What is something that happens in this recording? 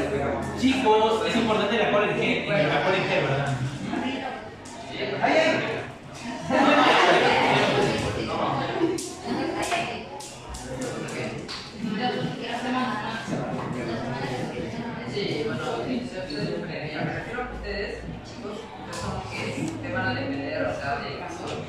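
A young man speaks to a group in a room with a slight echo.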